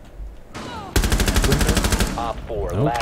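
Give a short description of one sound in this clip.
A rifle fires a rapid burst.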